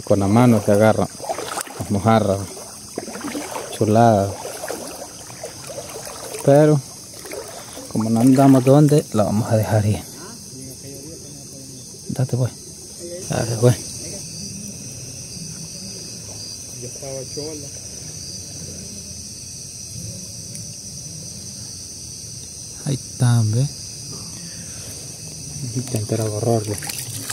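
A frog croaks loudly close by.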